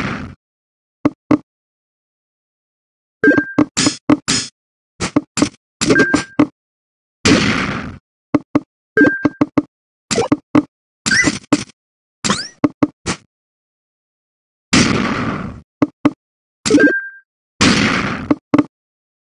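Game sound effects click and chime in quick bursts.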